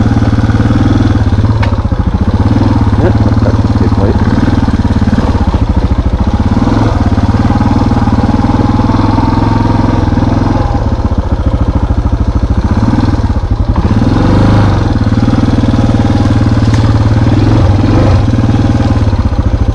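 A dirt bike engine revs and drones steadily up close.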